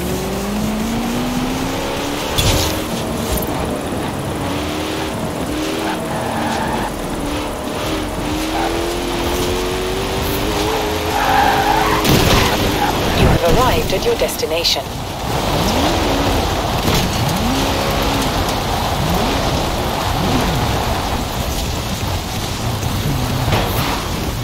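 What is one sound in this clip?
A racing car engine roars at high speed, rising and falling in pitch as it shifts gears.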